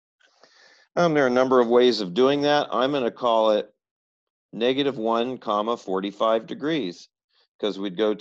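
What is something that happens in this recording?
A middle-aged man speaks calmly and explains, heard through a microphone.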